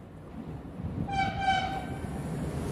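A train horn sounds briefly as the train approaches.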